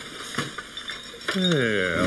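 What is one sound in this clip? A man cries out in surprise.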